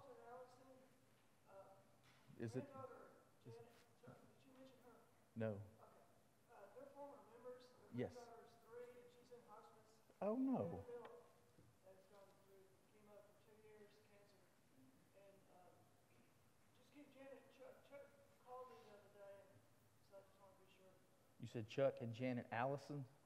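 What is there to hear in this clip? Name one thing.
A man speaks calmly through a loudspeaker in a large echoing hall.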